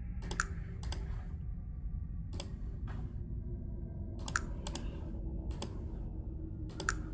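Short clicks sound from a computer game interface.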